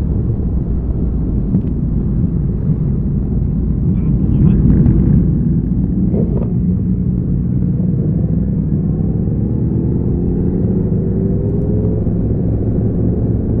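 A motorcycle engine hums close by, rising in pitch as it speeds up.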